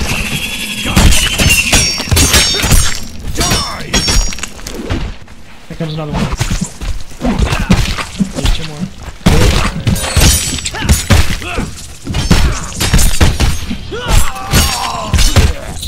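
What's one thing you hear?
A blade slashes and strikes flesh with wet thuds.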